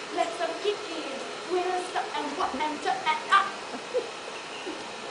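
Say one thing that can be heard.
A woman speaks with animation, heard from a distance in a large room.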